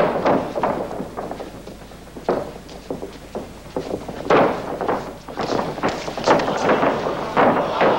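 Kicks and blows thud sharply against bodies.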